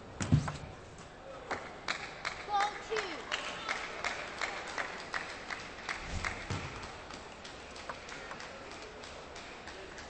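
A table tennis ball clicks sharply against paddles and the table in a quick rally.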